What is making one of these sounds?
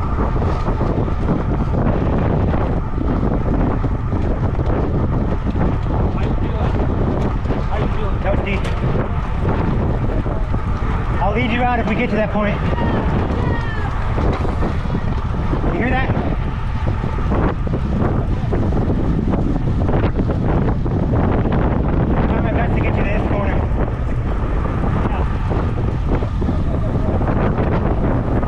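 Wind rushes loudly past a cyclist outdoors.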